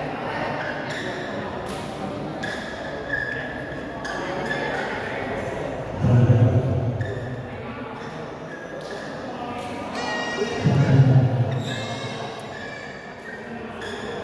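A crowd of spectators murmurs and chatters in the background.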